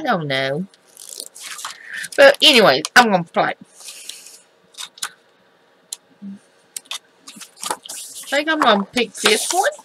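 Sheets of paper rustle and flap as pages are turned.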